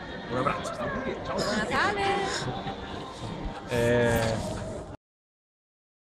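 A woman laughs and talks cheerfully close by.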